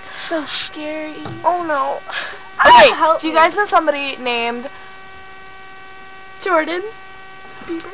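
A teenage girl talks animatedly close to a laptop microphone.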